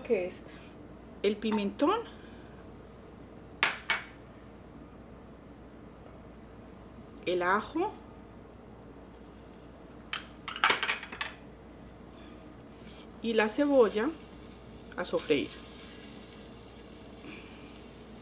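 Chopped vegetables drop and patter into a metal pot.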